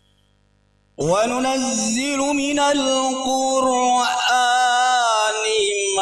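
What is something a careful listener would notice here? A man chants loudly into a microphone through loudspeakers.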